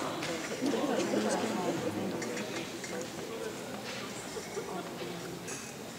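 A seated audience murmurs and chatters in a large echoing hall.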